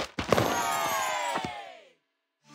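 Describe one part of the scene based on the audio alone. A bright, sparkling chime rings out and quickly fades.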